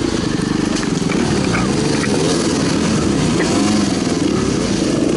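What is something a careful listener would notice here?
A dirt bike engine revs and putters loudly close by.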